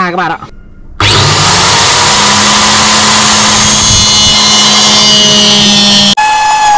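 An angle grinder whines loudly as it cuts.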